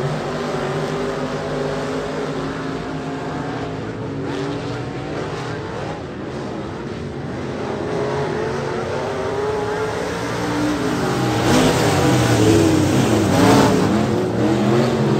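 Several race car engines roar and rev loudly outdoors, growing louder as the cars pass close by.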